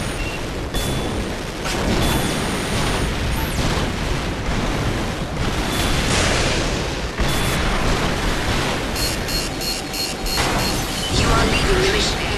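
Jet thrusters roar as a robot boosts through the air.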